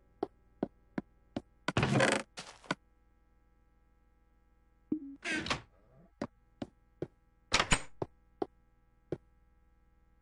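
Footsteps tap on the ground at a steady pace.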